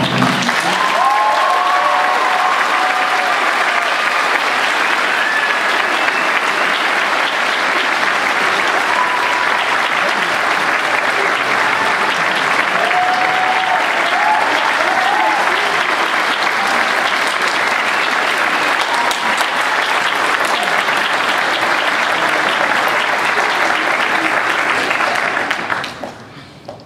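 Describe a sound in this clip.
A large audience claps loudly in an echoing hall.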